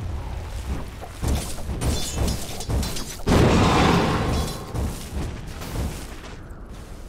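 Blades and fire strike repeatedly in a game battle.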